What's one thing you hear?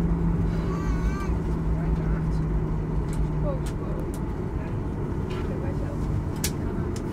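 A jet engine roars steadily from inside a taxiing aircraft cabin.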